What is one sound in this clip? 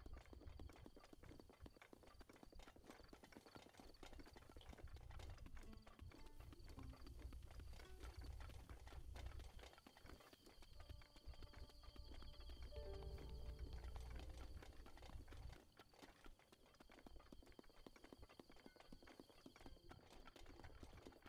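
Footsteps crunch steadily over dirt and grass.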